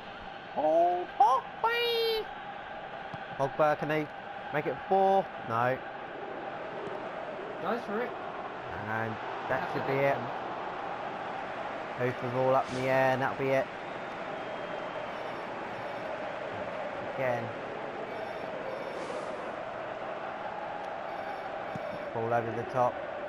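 A stadium crowd murmurs steadily.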